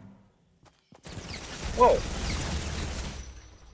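A gun fires a shot with a loud blast.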